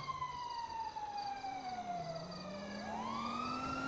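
A car speeds past on a nearby road, its engine pitch falling.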